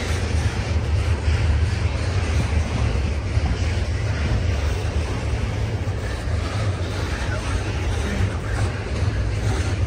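A long freight train rumbles steadily past on the tracks nearby.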